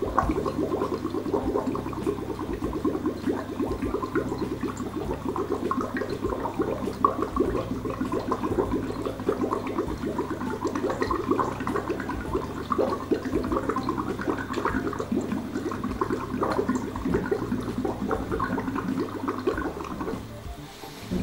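Air bubbles gurgle rapidly through water from a straw, close by.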